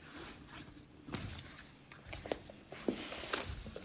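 Footsteps cross a floor indoors.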